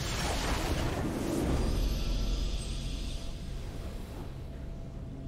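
A triumphant video game victory fanfare swells and then fades.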